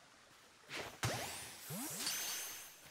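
A ball whooshes through the air as it is thrown.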